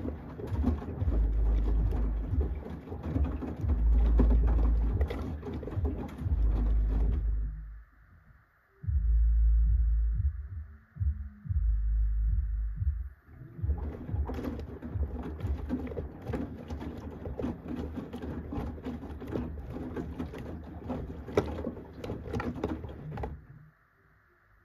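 A washing machine drum tumbles laundry with a low rumble.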